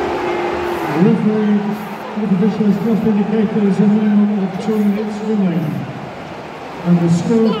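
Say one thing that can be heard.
A large football crowd sings a chant in unison.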